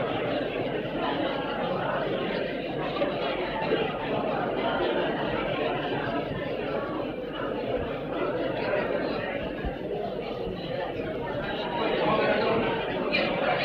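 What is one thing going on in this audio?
A crowd of men murmurs and talks over one another in an echoing hall.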